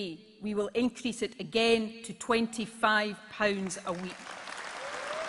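A woman speaks firmly into a microphone, echoing in a large hall.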